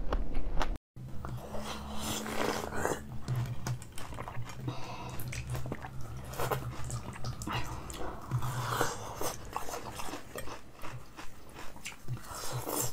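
Hard ice crunches and cracks loudly up close as someone bites and chews it.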